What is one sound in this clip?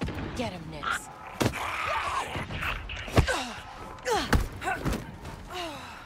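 Fists thump and bodies grunt in a close fight.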